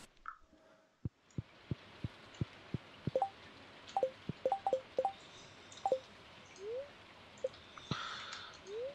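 Light footsteps tap at a steady pace.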